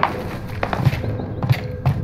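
Footsteps climb stone stairs.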